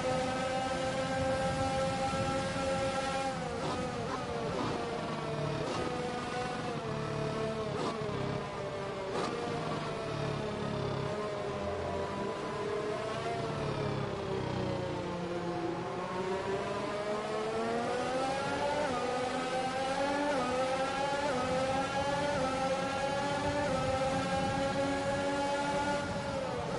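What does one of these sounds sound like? A racing car engine screams loudly, its pitch dropping and rising as it shifts gears.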